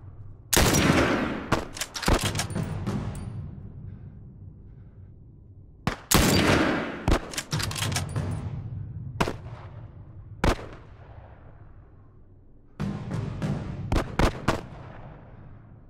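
A rifle fires loud shots that echo and roll away.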